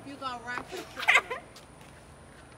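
A young girl screams with laughter.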